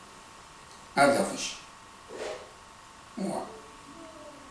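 An elderly man speaks calmly in short phrases close by.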